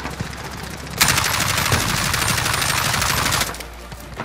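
A rifle fires rapidly in a long burst.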